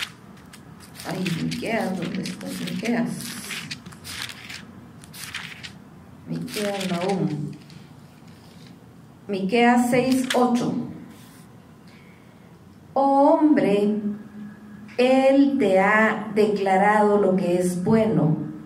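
A middle-aged woman speaks with feeling into a microphone, in short bursts with pauses.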